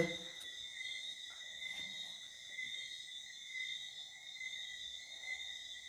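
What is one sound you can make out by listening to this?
A phone app gives off a steady electronic hum and hiss.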